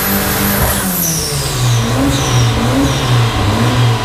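A car exhaust pops and crackles as the engine drops back down.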